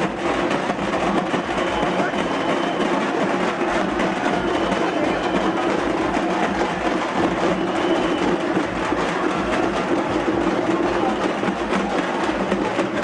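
Drums beat loudly in a fast rhythm.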